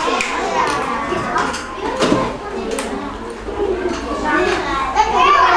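Children chatter nearby in a busy room.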